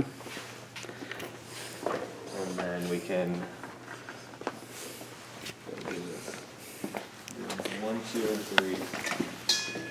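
A young man talks close to the microphone in a casual voice.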